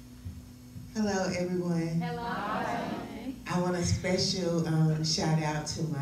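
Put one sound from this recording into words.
A woman speaks with animation into a microphone, heard through loudspeakers in a large room.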